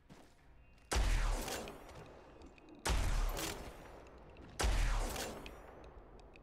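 A heavy gun fires single loud shots.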